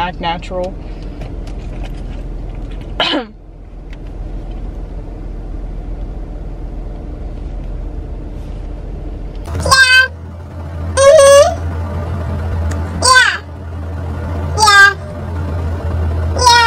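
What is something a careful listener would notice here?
A young woman speaks close by in short, lively bursts.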